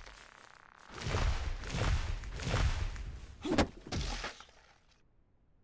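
A tree cracks and crashes to the ground with a long rumble.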